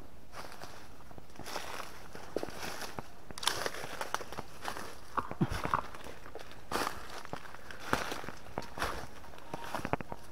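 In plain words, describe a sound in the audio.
Dry leaves crunch and rustle underfoot.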